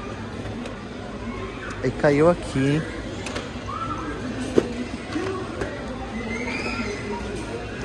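Boxes of toy cars are lifted and rattle lightly.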